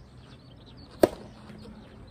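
A tennis racket strikes a ball with a sharp, close pop.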